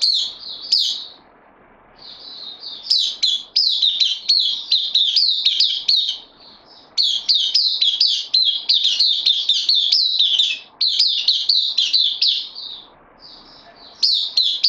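Small birds sing loud, fast, high chirping phrases close by.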